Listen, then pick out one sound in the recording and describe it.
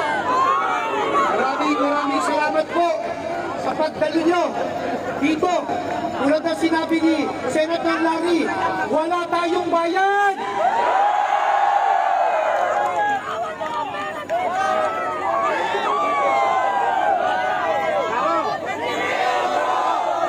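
A large crowd of men and women shouts and chants loudly outdoors.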